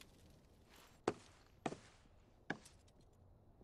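Boots step on a wooden floor.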